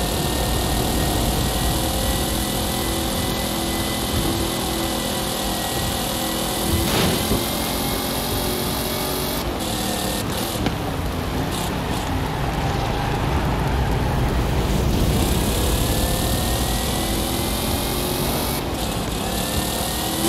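A car engine roars at high speed, its pitch rising and falling as it shifts gears.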